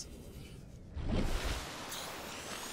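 Water splashes loudly as a vehicle breaks through the surface.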